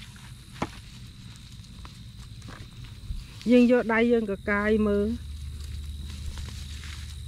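A hand scrapes and digs through loose, dry soil.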